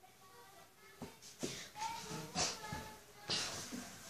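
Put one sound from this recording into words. A boy's feet thump on the floor as he dances.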